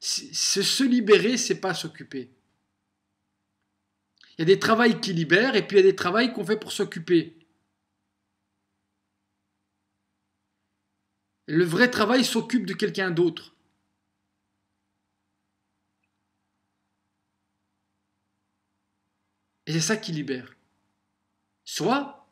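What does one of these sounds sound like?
A man talks with animation close to a microphone, in bursts separated by silences.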